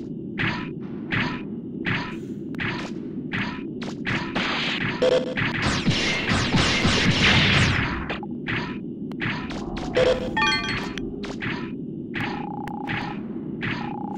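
Metallic footsteps clank steadily in a quick rhythm.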